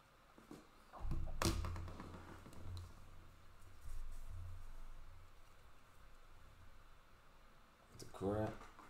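Hands shuffle cards and crinkle a plastic wrapper up close.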